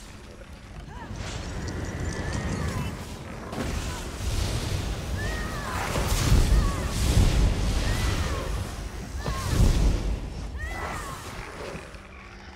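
Lightning spells crackle and zap in bursts.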